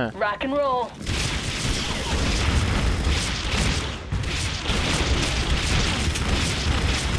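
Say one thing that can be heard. Rapid gunfire and blasts crackle in a battle.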